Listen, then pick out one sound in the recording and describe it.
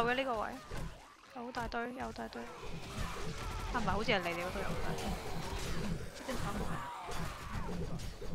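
A spiked club thuds against zombies.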